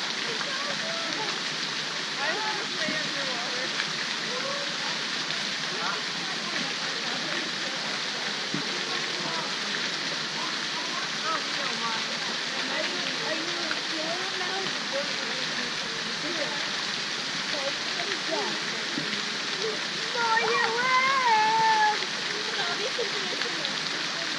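A fountain splashes steadily into a pool outdoors.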